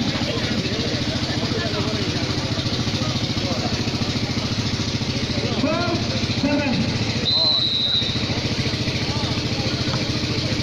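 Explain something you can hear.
A large crowd chatters and cheers outdoors.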